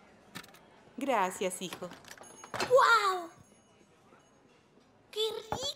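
A young boy speaks cheerfully.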